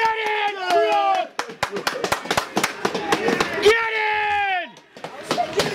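Young men shout and cheer loudly close by, outdoors.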